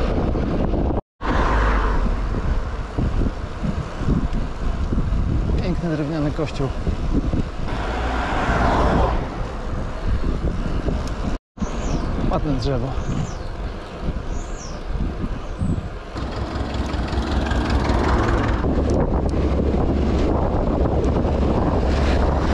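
Wind rushes and buffets past a moving bicycle.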